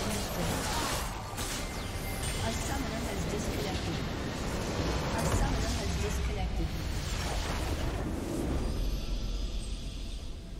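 A crystal structure shatters with a loud, rumbling explosion.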